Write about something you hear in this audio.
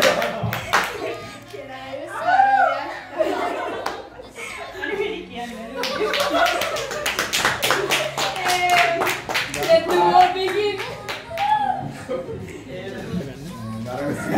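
A young man laughs and talks cheerfully.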